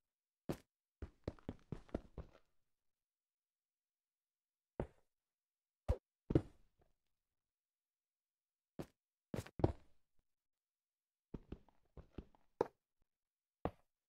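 Stone blocks are placed and broken with short, sharp knocks.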